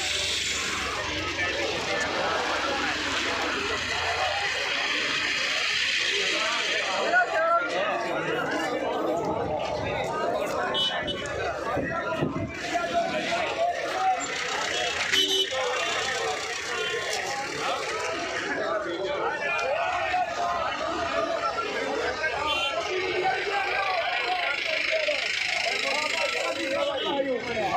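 A large crowd of men chatters and calls out outdoors.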